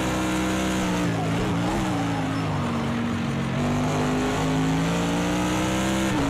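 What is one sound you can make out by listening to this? A racing car engine drops in pitch as the car brakes and shifts down, then climbs again.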